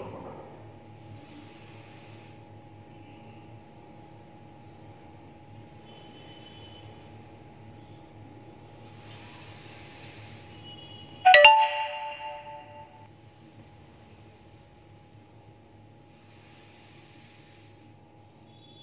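A young woman breathes in and out slowly through her nose.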